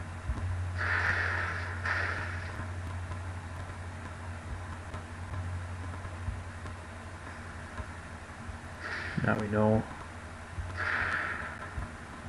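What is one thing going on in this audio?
A gas puff bursts with a short hissing whoosh, several times.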